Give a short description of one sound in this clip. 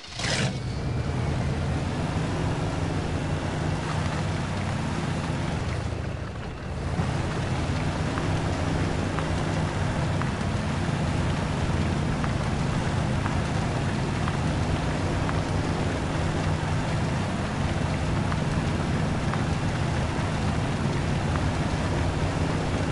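An off-road truck's engine rumbles and drones steadily.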